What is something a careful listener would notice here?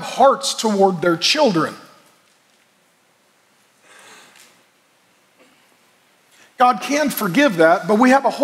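A middle-aged man speaks with animation through a microphone, in a large echoing hall.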